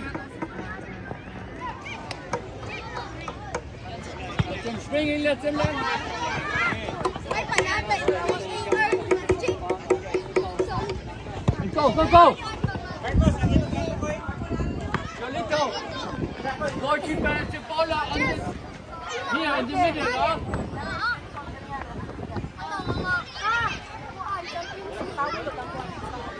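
Children shout and call out to each other nearby, outdoors.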